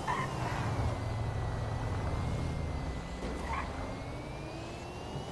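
A sports car engine rumbles low and steady as the car drives along.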